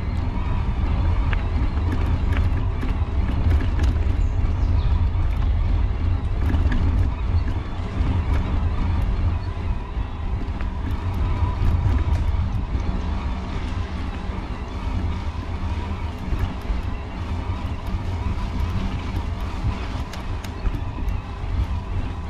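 Wind rumbles loudly against a moving microphone outdoors.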